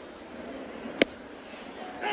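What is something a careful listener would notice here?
A ball smacks into a catcher's mitt with a sharp pop.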